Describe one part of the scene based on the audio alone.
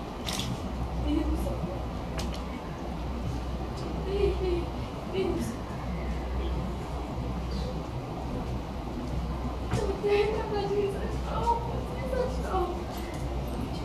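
A woman speaks softly and sorrowfully nearby.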